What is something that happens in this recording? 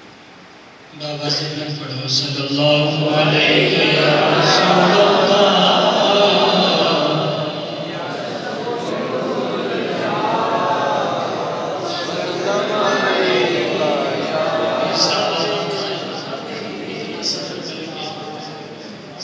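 A man sings or recites into a microphone, loud and echoing through a loudspeaker.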